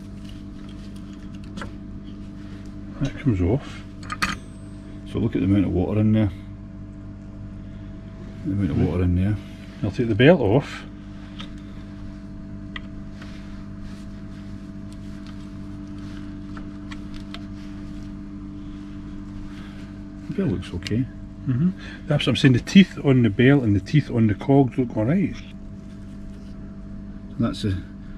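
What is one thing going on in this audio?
Metal parts clink and rattle as they are handled.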